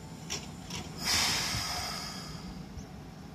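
Train doors slide shut with a loud hiss of air.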